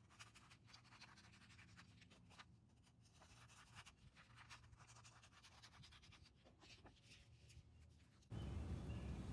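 Sheets of sandpaper rustle and slide against each other.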